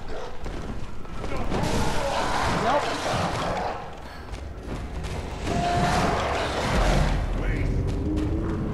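Weapons slash and thud in a close fight.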